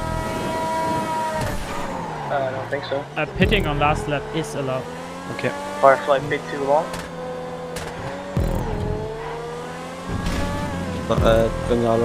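A racing car engine roars at high revs, its pitch dropping and climbing as it shifts gears.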